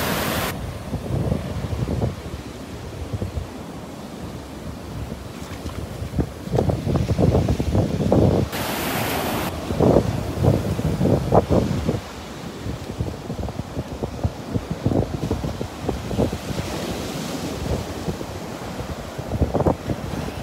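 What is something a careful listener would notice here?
Waves crash and wash up onto a beach.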